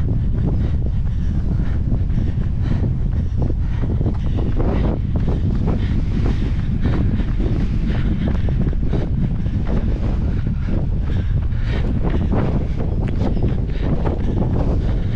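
Wind blusters steadily against the microphone outdoors.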